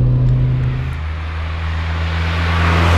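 A car approaches along a road with a rising rush.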